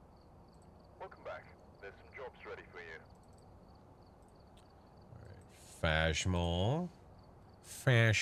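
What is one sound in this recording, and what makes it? A man talks into a microphone, calling out loudly at times.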